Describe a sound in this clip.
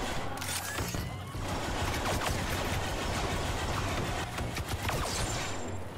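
Laser bolts zip past and hit a shimmering energy shield.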